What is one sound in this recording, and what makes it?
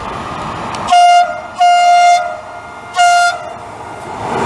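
A train horn blares in three loud blasts.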